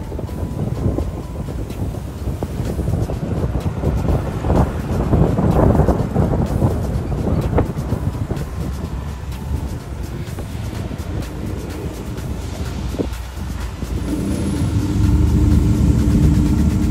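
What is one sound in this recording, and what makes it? Tyres hum on a paved road.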